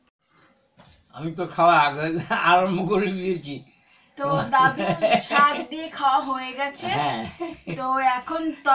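A young woman sings with feeling, close by.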